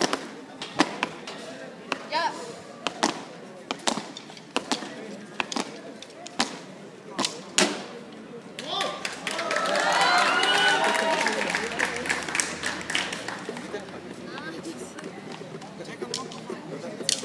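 Drummers strike snare drums in sharp, scattered hits outdoors.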